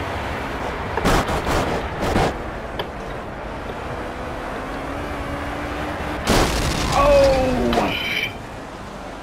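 A race car skids and crashes with heavy thuds.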